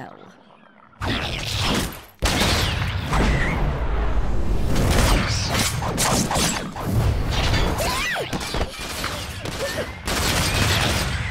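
Loud blows and crashes of a fight ring out.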